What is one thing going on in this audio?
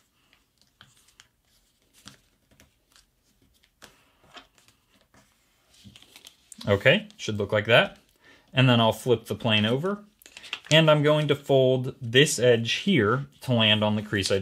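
Paper rustles and creases as it is folded by hand.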